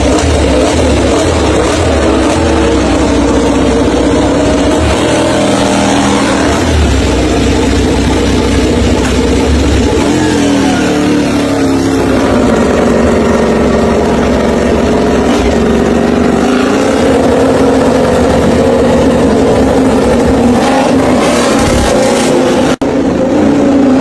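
A motorcycle engine idles and revs loudly close by.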